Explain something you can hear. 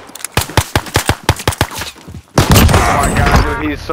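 A pistol fires several sharp shots in quick succession.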